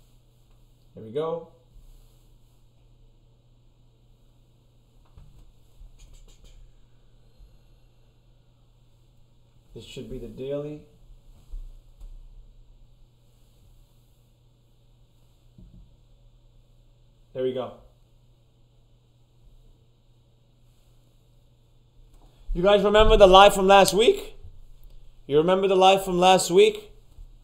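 A man speaks calmly and close up, in short bursts and then at length.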